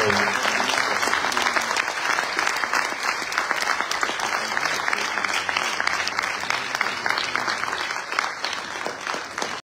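A crowd applauds steadily in a large echoing hall.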